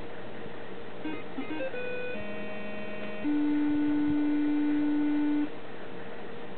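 A computer speaker beeps out a short tune.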